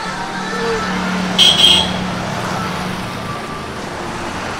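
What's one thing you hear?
A motorbike engine drones past.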